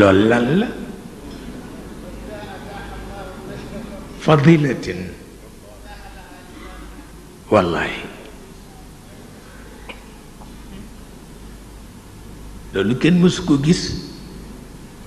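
An elderly man speaks slowly and solemnly into a microphone, in bursts with long pauses.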